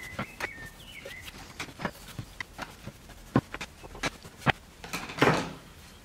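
A wooden board knocks against another board.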